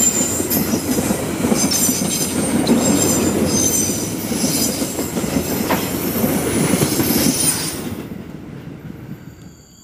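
A freight train rumbles and clatters past on the rails, then fades into the distance.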